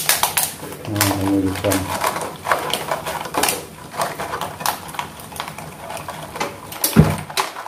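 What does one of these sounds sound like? Dry stalks rustle and crunch in a metal pot.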